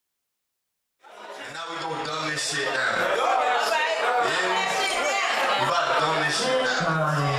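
A young man raps energetically into a microphone, heard through loudspeakers.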